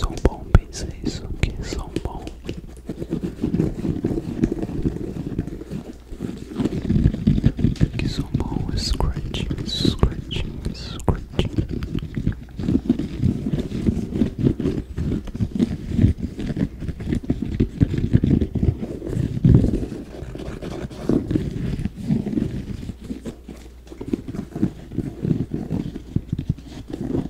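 A sneaker's leather rustles and creaks as it is handled close to a microphone.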